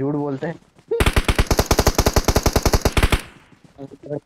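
A rifle fires in a rapid automatic burst.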